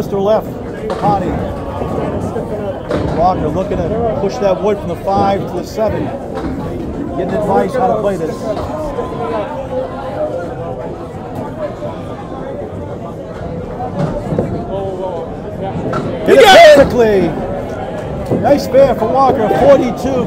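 Men talk and chatter nearby in a large echoing hall.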